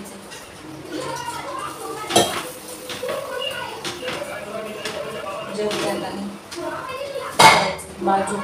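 Metal utensils clink and clatter.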